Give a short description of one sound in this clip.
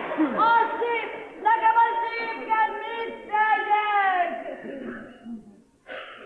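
A man sings loudly on a stage.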